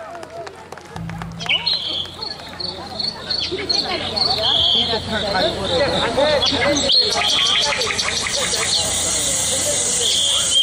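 Music plays loudly through loudspeakers outdoors.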